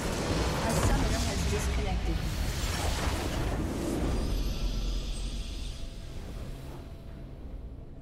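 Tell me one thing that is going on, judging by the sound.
A triumphant victory fanfare swells and then fades away.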